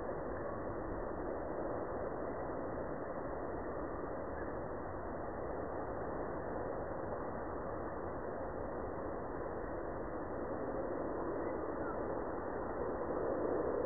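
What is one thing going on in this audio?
Wind blows steadily across the microphone outdoors.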